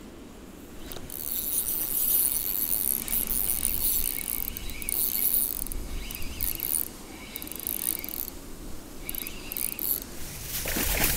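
A spinning reel is cranked, its gears whirring as the line is wound in.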